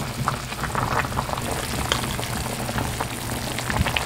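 A ladle stirs and scrapes in a pot.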